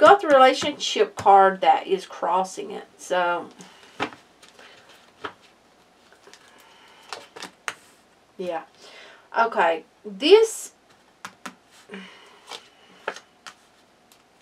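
Playing cards slide and tap softly onto a cloth-covered table.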